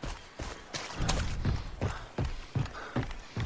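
Footsteps clunk on wooden boards.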